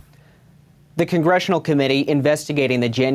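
A man speaks calmly into a microphone, like a news reporter.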